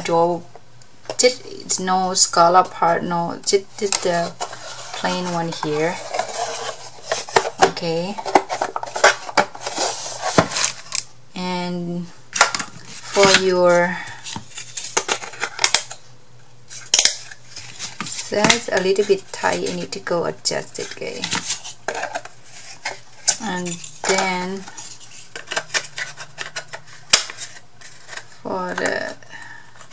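Thin wooden pieces clack and tap together as they are handled.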